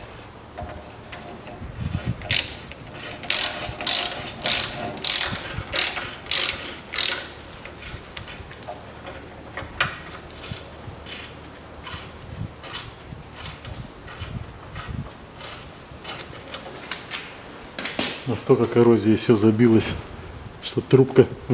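Metal tools clink and scrape against car parts.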